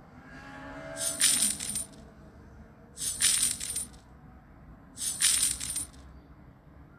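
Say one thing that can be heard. Coins clink in bright jingling bursts.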